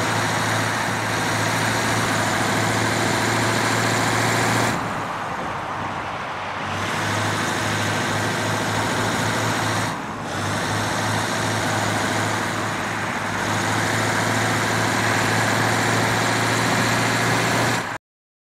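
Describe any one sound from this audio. An armoured vehicle's engine drones steadily as it drives along a road.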